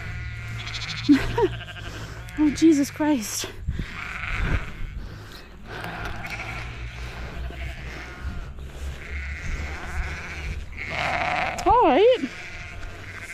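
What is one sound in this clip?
Sheep and lambs bleat nearby.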